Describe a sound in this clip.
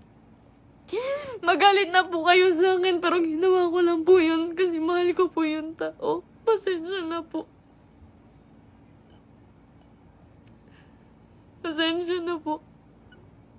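A young woman sobs and wails in a high voice close to the microphone.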